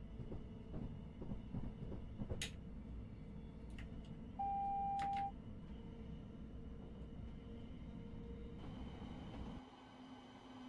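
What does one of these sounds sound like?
A train rumbles steadily along the track, heard from inside the cab.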